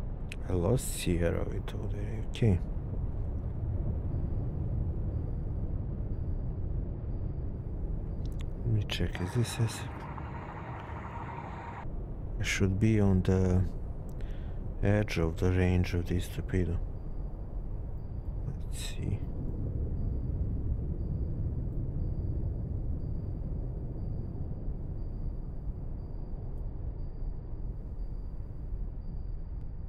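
A submarine rumbles low and steadily as it moves underwater.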